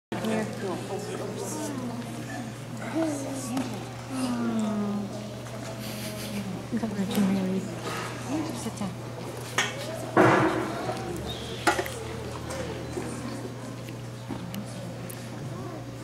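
A woman speaks to the children nearby.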